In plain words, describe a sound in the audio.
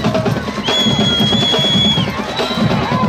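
A referee's whistle blows a long, sharp blast.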